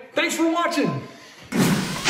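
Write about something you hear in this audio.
A man speaks cheerfully close by.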